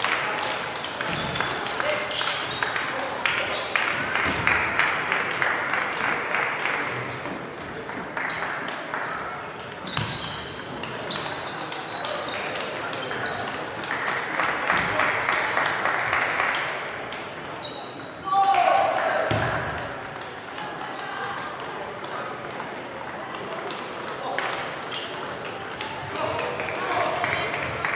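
Table tennis balls click on tables and paddles throughout a large echoing hall.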